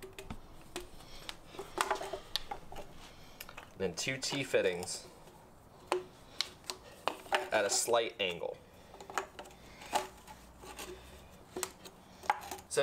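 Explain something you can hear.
Plastic pipe fittings click and knock together.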